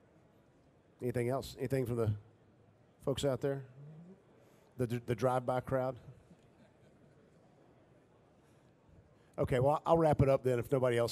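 An older man speaks slowly and firmly through a microphone, with pauses between phrases.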